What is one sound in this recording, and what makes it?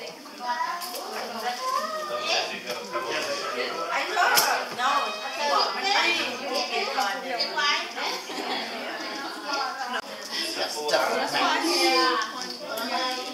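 Several women and men chat nearby.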